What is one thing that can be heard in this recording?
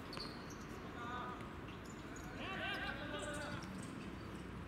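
Young men shout to each other from across an open outdoor court.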